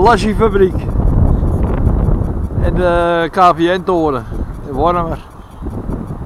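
Wind blows loudly outdoors, rumbling against the microphone.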